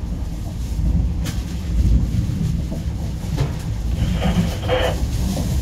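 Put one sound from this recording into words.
A vehicle rumbles steadily as it drives along.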